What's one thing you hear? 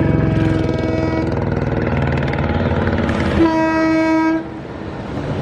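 A locomotive horn blares loudly in long blasts.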